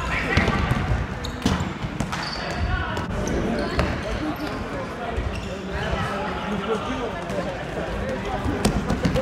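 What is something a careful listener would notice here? Young men shout and call out across the hall.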